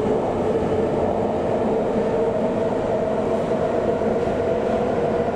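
Train wheels screech with a steady whine on the rails.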